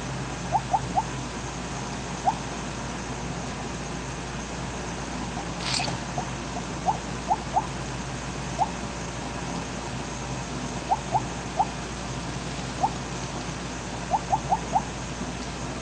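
Short high chimes ping again and again as a game snake eats glowing pellets.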